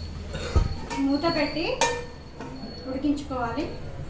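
A metal lid clanks down onto a pan.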